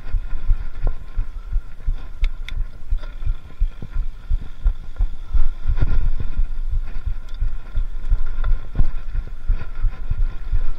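Wind rumbles heavily across a microphone outdoors.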